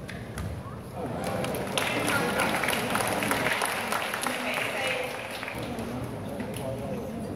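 A crowd cheers and chatters loudly in a large hall.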